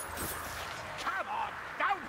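A sword swings through the air.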